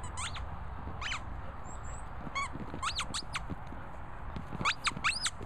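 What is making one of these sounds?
A dog chews a squeaky rubber toy, making it squeak again and again.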